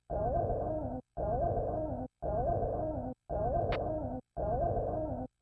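A video game beam roars in loud, repeated bursts with a wavering tone.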